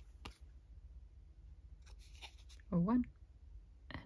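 Scissors snip through thick paper.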